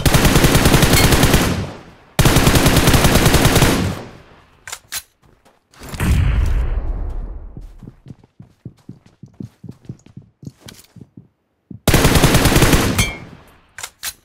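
A rifle fires loud, booming shots that echo away.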